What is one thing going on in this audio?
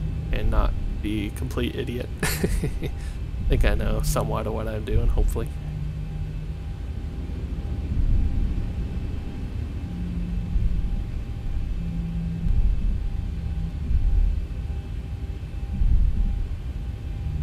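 A jet airliner's engines rumble low and steady as it taxis.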